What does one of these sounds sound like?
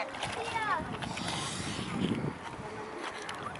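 A child wades and splashes through shallow water.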